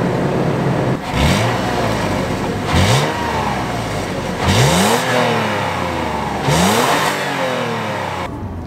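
A vehicle's engine revs up sharply several times and falls back.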